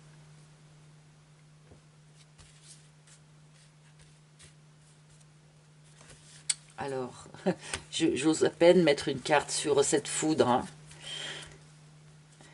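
Playing cards rustle and slide against each other.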